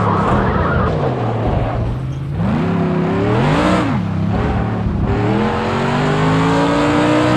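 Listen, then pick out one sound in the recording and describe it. A racing car engine roars, rising and dropping in pitch as it shifts gears.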